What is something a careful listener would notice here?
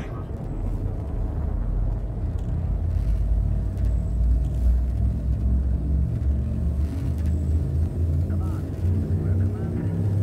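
A spacecraft engine rumbles low and steadily.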